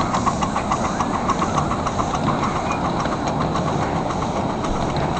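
Train wheels click rhythmically over rail joints close by.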